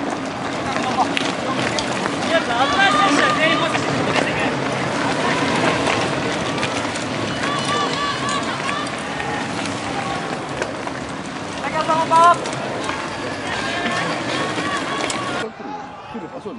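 Mountain bikes rattle over a bumpy dirt track.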